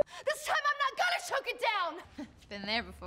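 A woman shouts with emotion in an echoing hall.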